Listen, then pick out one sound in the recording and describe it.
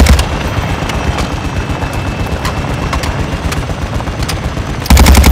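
A rifle clicks and rattles as it is reloaded.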